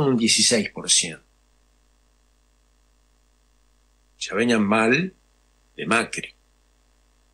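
A middle-aged man speaks calmly into a microphone in short bursts.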